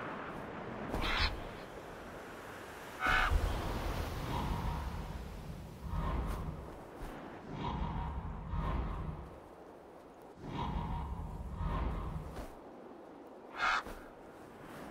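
An eagle screeches sharply.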